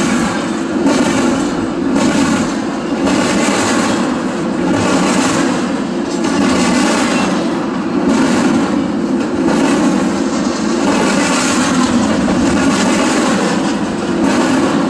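A freight train rumbles past close by, its wheels clattering rhythmically on the rails.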